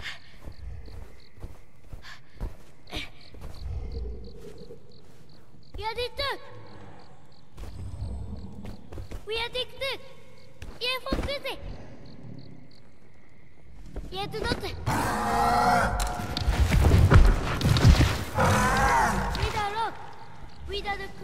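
Heavy footsteps thump on stone.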